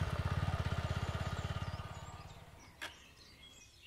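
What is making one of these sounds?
A motorcycle engine runs and fades out.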